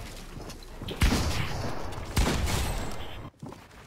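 Loud blasts boom from a rocket launcher firing.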